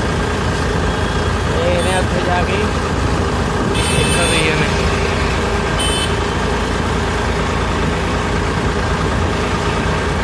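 Motorcycles hum past nearby.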